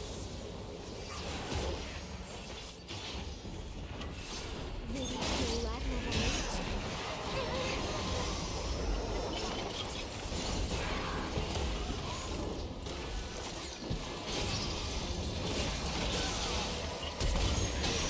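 Game spell effects whoosh and crackle as characters fight.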